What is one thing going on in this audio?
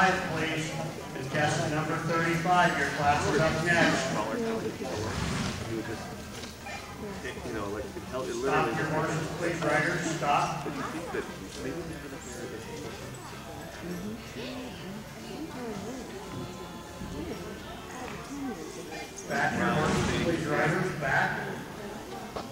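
A man talks nearby in a large echoing hall.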